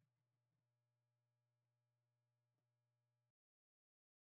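An electric guitar rings faintly on a sustained note, then cuts off abruptly.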